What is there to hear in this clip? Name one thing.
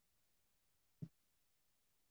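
A cardboard box is set down on a table with a soft thud.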